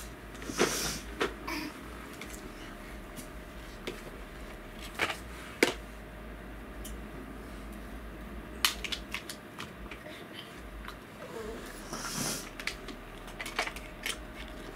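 Plastic toys clatter and click as a toddler plays with them.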